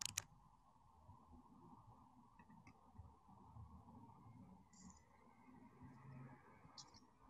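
A man speaks quietly and calmly over an online call.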